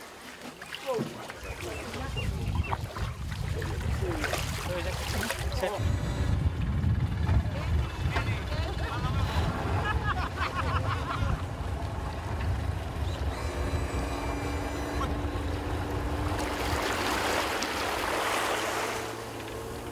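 Boat engines rumble steadily.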